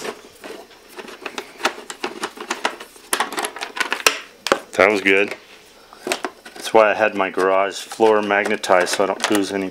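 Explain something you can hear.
Hands click and tap while unscrewing small screws from plastic.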